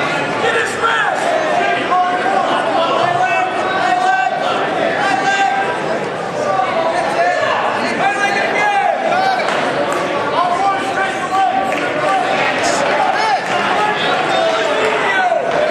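A crowd of spectators shouts encouragement in an echoing hall.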